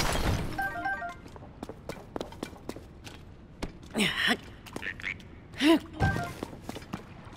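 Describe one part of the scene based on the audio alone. A short bright chime rings in a video game.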